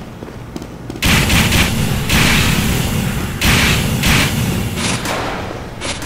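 A flamethrower roars in a loud, steady rush.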